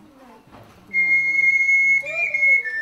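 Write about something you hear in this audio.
Ocarinas play a steady high note.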